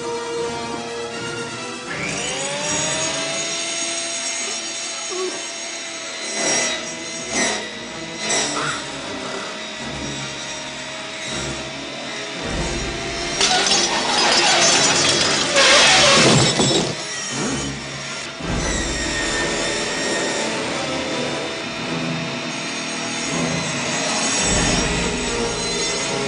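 A monster roars loudly.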